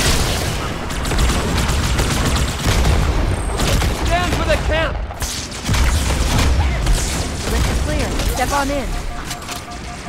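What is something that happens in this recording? Energy blasts explode with deep booms.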